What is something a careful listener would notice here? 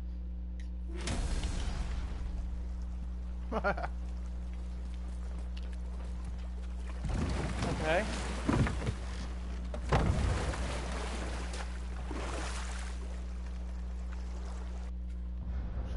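Water laps and splashes around a rowing boat.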